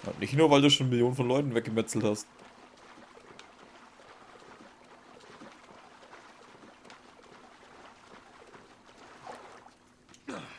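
Water splashes and sloshes as a swimmer strokes through it.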